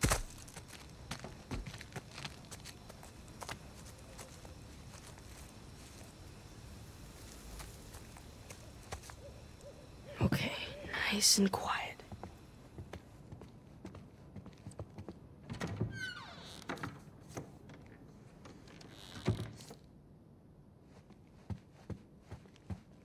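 Footsteps fall on a hard floor.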